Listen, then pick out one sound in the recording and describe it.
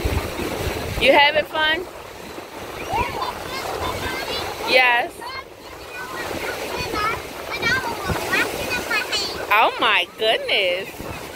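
A young child squeals and shouts excitedly close by.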